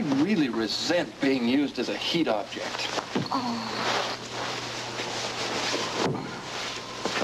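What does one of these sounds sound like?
A sleeping bag rustles as someone shifts under it.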